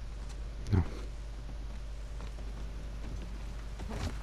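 Footsteps creak slowly on a wooden floor.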